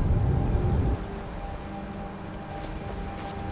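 A river flows steadily nearby.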